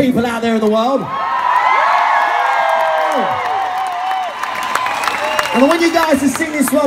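A large crowd sings along loudly, close by.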